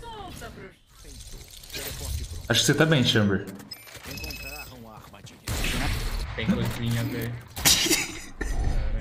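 A young man talks and laughs excitedly into a microphone.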